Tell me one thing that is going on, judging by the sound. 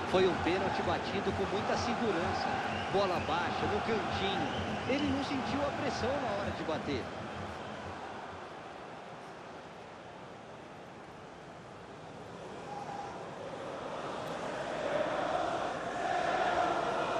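A large crowd roars and cheers in a stadium, swelling louder near the end.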